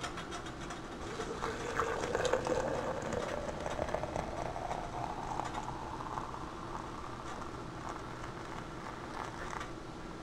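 Hot water pours into a glass jug, the gurgle rising in pitch as the jug fills.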